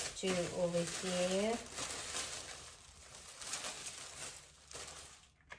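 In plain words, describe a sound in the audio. Fabric rustles as it is handled and folded.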